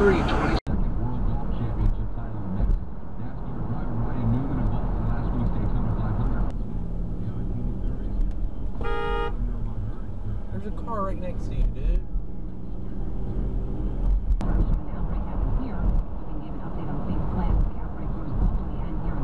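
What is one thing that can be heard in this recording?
Tyres roar steadily on a highway from inside a moving car.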